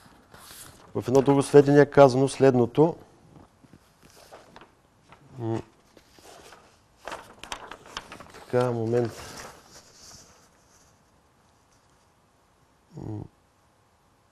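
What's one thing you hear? A man speaks calmly into a microphone, in short bursts with pauses.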